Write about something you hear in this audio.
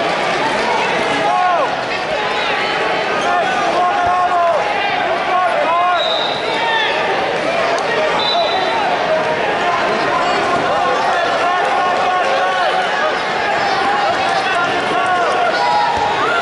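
A large crowd chatters and shouts in a big echoing hall.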